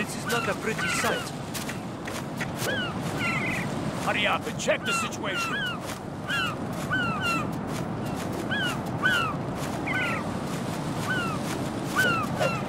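Seagulls call again and again.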